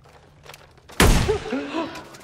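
A gunshot cracks sharply.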